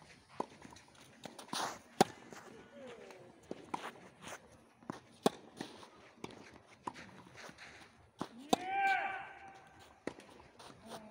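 A tennis racket strikes a ball with sharp pops.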